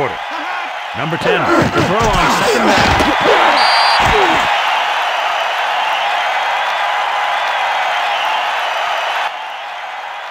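A crowd cheers louder during a kick return.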